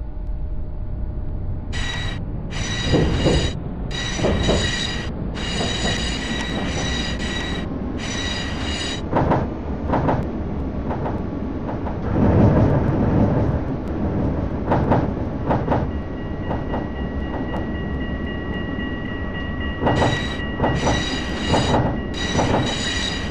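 A tram rumbles steadily along rails.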